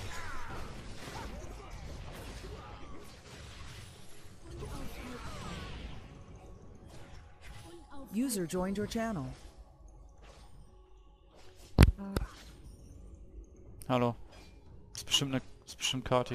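Magic spell effects whoosh and crackle in a video game battle.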